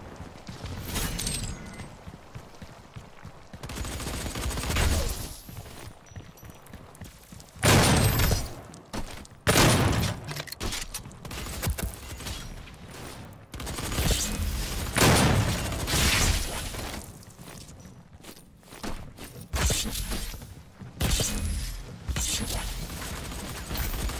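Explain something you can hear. Gunshots boom loudly in bursts.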